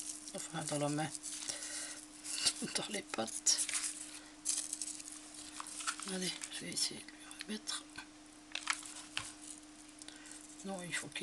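Small craft items rustle and tap as hands handle them close by.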